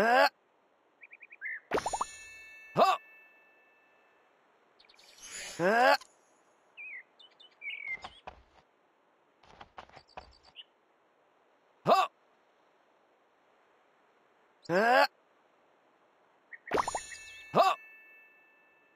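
Short bright game chimes ring out now and then.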